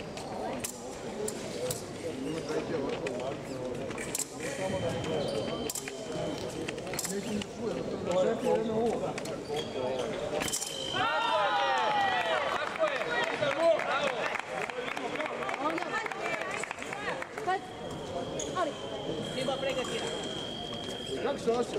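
Fencers' feet shuffle and stamp on the floor in a large echoing hall.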